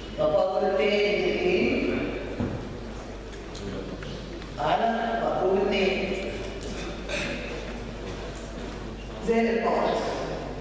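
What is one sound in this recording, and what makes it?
A man speaks calmly into a clip-on microphone.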